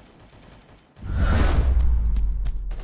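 A rifle fires in a video game.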